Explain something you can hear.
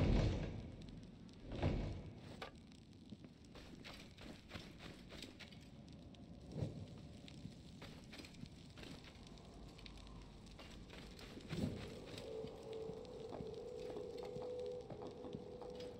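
Footsteps scuff on a sandy stone floor.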